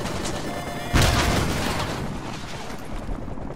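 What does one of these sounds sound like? A loud explosion booms and slowly fades.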